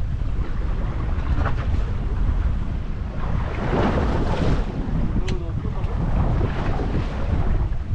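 Waves splash against the side of a boat.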